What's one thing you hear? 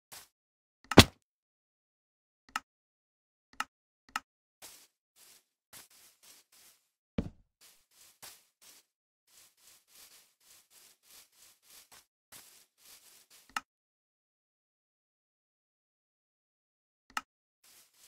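A sharp click sounds a few times.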